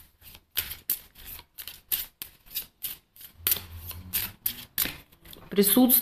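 Playing cards riffle and flick rapidly as they are shuffled.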